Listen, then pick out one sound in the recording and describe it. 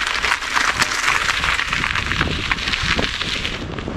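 Bicycle tyres crunch over gravel.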